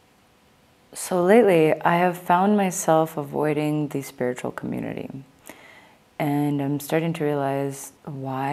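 A young woman speaks calmly and close through a microphone.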